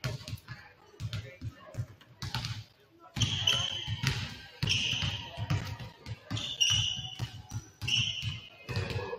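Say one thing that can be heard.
Basketballs bounce with hollow thuds in a large echoing gym.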